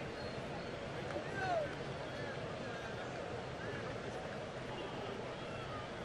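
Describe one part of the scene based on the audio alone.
A large crowd murmurs and chatters steadily outdoors.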